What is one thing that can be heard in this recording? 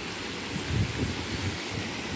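Water rushes steadily over a low weir.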